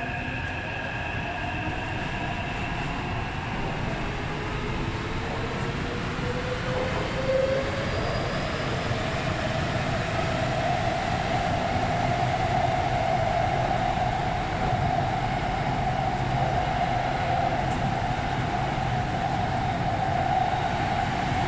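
A subway train rumbles and whines steadily along the track.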